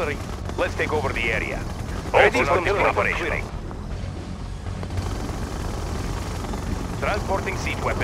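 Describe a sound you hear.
Weapons fire and explosions rumble in a battle.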